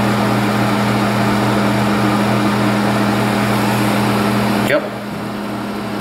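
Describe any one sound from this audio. An electric heater hums and whirs steadily, then its whirring drops away.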